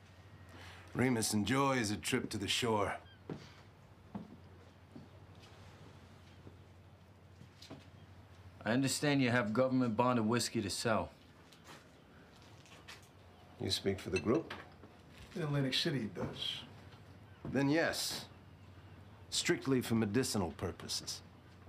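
A middle-aged man speaks in a friendly, measured voice.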